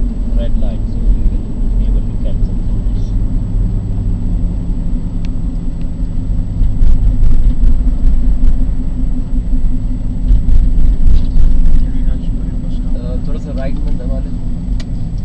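A car engine hums steadily from inside the vehicle as it drives.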